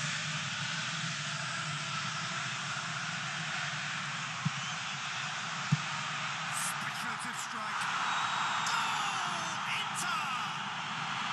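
A large stadium crowd chants and roars steadily.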